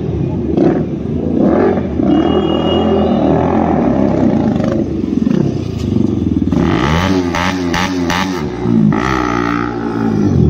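A motorcycle engine revs loudly nearby, rising and falling in pitch.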